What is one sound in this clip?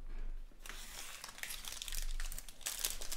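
A foil pack crinkles.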